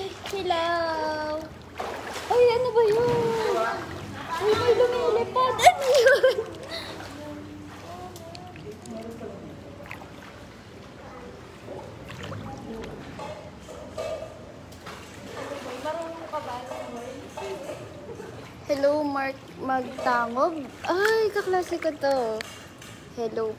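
A young woman talks and laughs close by, with animation.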